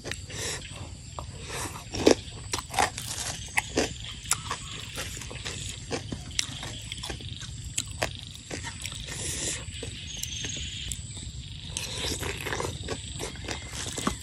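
A young woman chews crunchy food.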